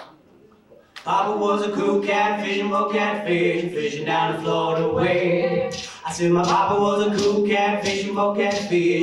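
A man strums an acoustic guitar.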